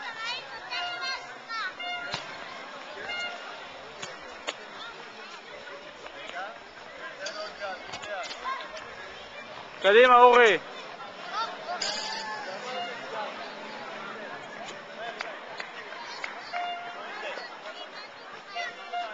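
Children shout and chatter in the distance.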